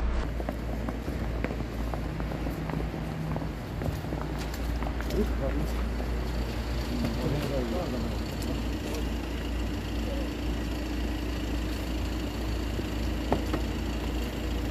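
Boots shuffle and scrape on wet pavement.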